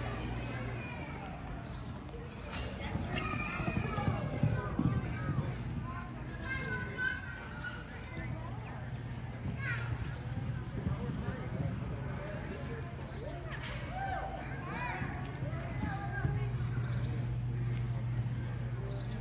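A horse gallops on soft dirt.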